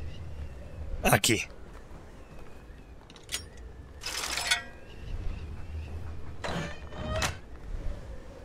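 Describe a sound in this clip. A metal mechanism clicks and clunks as it turns.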